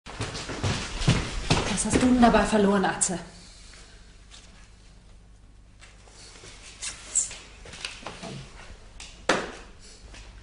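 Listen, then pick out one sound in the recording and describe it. A young man speaks quietly and hesitantly nearby.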